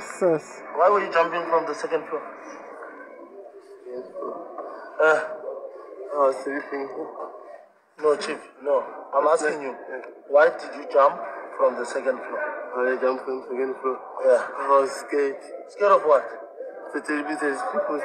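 An elderly man speaks in a shaky, upset voice.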